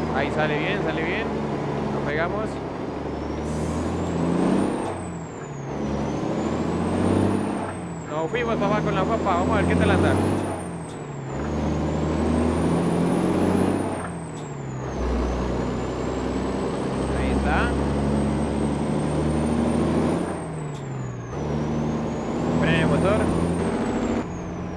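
A truck engine rumbles and changes pitch as gears shift.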